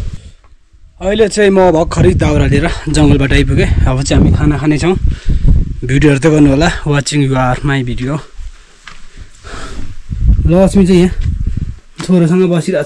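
A young man talks calmly and close by.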